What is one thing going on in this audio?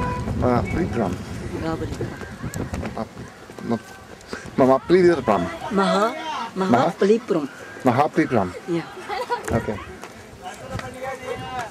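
Several men and women talk with animation nearby outdoors.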